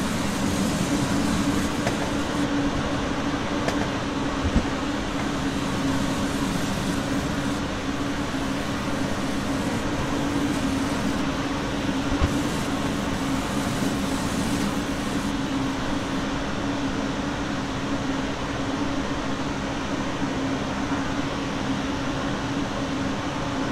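An electric train hums steadily as it runs along the track.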